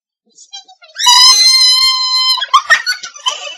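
A young woman squeals loudly in excitement.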